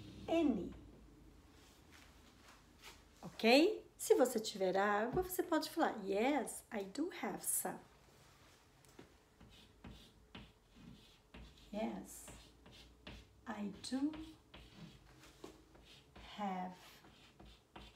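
A middle-aged woman speaks clearly and calmly close by, as if teaching.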